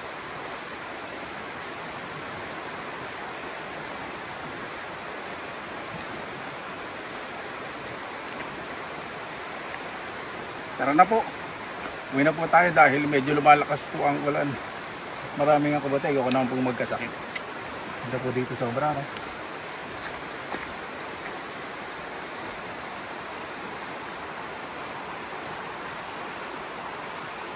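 A river rushes steadily in the background.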